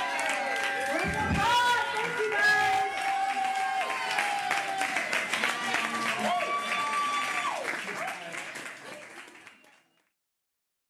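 A live band plays loudly and then fades out.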